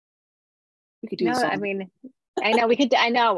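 A younger woman speaks and laughs over an online call.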